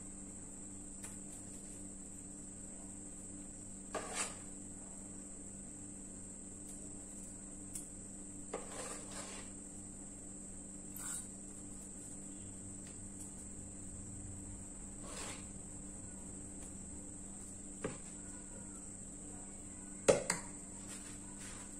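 A metal spoon scrapes and clinks against a metal pot.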